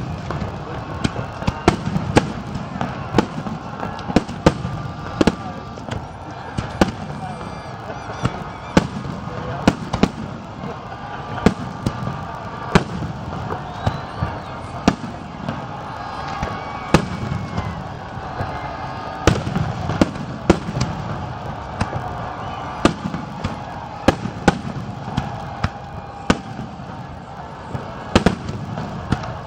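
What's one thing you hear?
Fireworks boom and crackle in the distance, with sharp bangs again and again.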